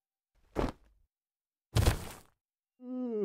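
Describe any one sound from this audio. A club thuds against a head.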